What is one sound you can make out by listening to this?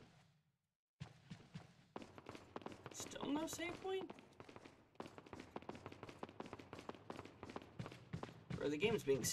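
Footsteps echo steadily on a stone floor.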